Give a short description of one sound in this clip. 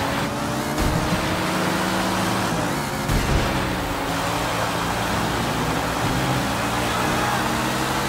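A sports car engine roars steadily at high revs.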